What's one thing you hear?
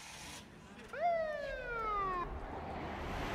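A police siren whoops briefly.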